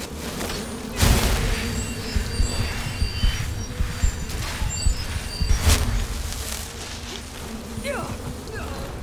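Magic fire crackles and whooshes in both hands.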